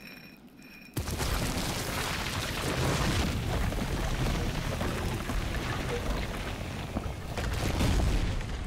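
Heavy stone grinds and rumbles as a wall slides open.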